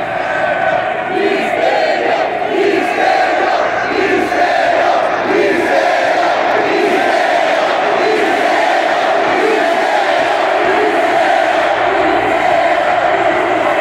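A large crowd chants in rhythm.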